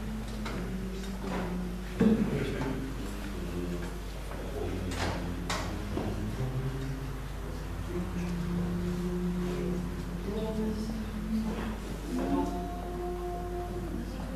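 A choir of men sings together in a room with some echo.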